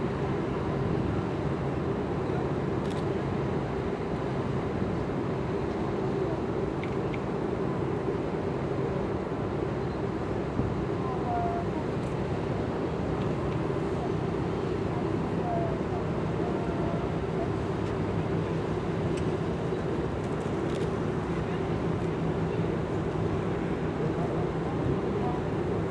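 A large ship's engines rumble low and steady across the water.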